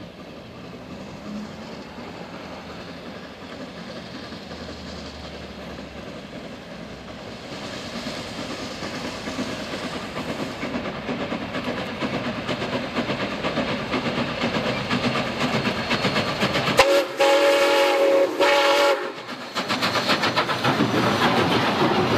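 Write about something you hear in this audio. A steam locomotive chuffs steadily, growing louder as it approaches.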